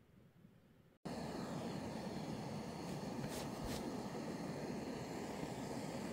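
A gas camp stove roars steadily.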